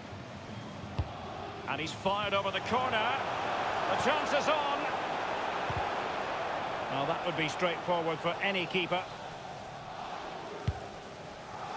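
A football is kicked with sharp thuds.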